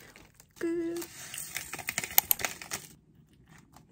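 A plastic packet crinkles and tears.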